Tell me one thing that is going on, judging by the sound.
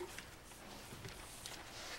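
Papers rustle at a lectern.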